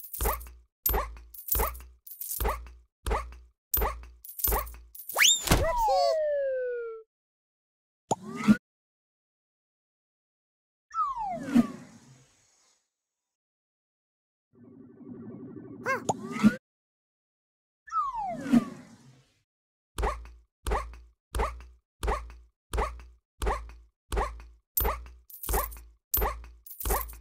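Bouncy game sound effects boing in a quick, steady rhythm.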